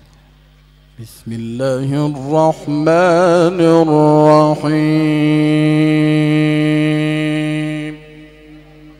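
A man chants loudly and melodiously into a microphone, heard through loudspeakers.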